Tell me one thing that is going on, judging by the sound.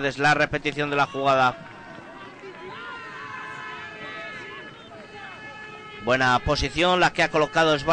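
A crowd cheers and murmurs in an open stadium.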